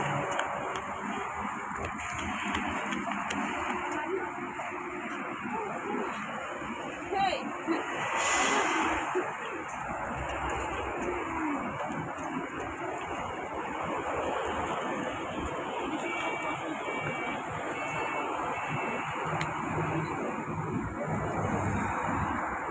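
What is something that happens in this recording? Traffic drives past on a busy road outdoors.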